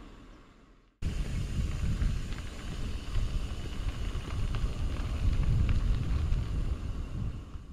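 Bicycle tyres roll and crunch over a dirt track.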